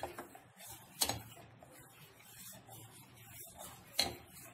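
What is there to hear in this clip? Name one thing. A metal ladle clinks against a metal pot.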